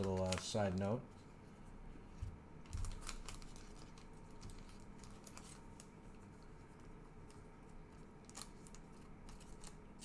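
A stiff card rustles and taps softly between fingers.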